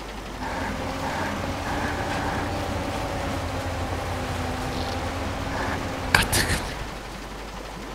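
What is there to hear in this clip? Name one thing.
Water splashes and sloshes around a truck.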